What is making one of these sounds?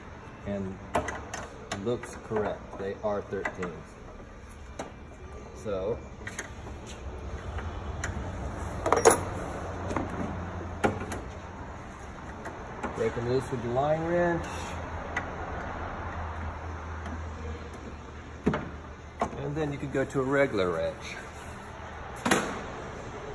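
Metal parts clink and knock under hands at work.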